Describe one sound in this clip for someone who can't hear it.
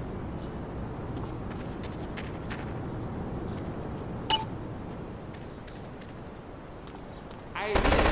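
Footsteps fall on concrete.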